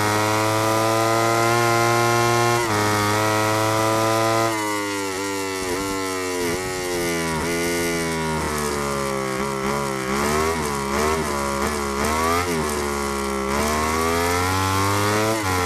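A motorcycle engine screams at high revs, drops sharply as it slows, then winds back up.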